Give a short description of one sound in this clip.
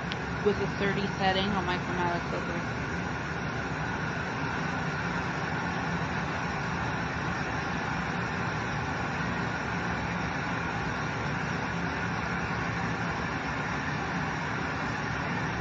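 Electric clippers buzz steadily close by.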